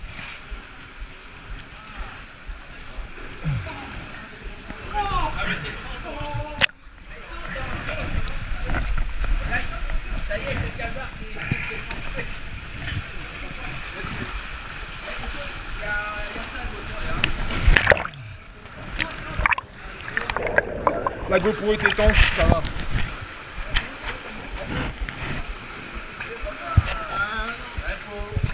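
Water rushes and gurgles close by.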